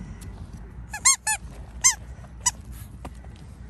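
A rubber toy ball squeaks sharply a few times.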